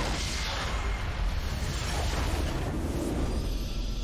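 Game spell effects crackle and whoosh in a battle.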